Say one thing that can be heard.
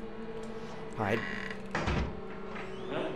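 A wooden door bangs shut.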